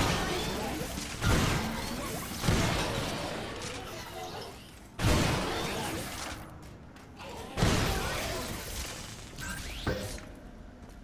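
Heavy gunfire booms with echoing explosions.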